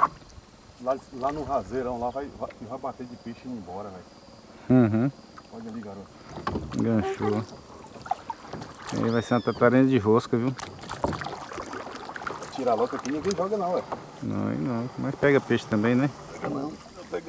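A man talks calmly nearby.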